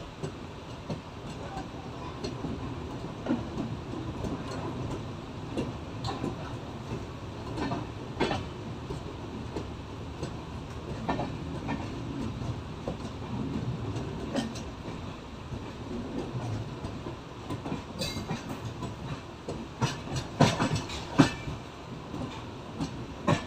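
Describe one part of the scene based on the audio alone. A passenger train rumbles steadily along the track close by.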